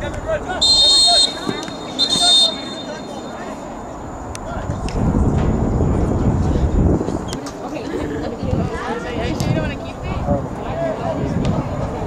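A crowd of spectators murmurs and cheers in the distance outdoors.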